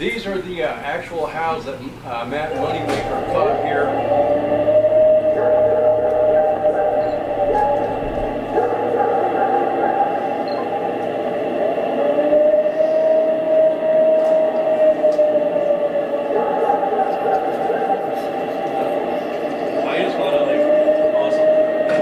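A middle-aged man speaks to an audience through a microphone.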